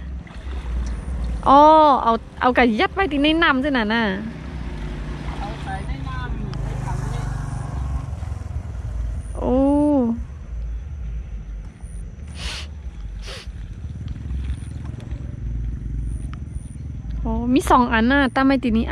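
Muddy water sloshes and splashes as a person wades through it.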